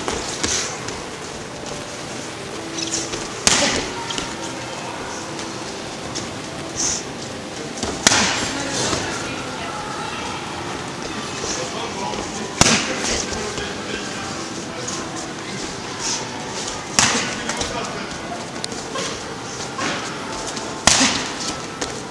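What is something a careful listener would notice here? Feet shuffle and thud on a padded mat.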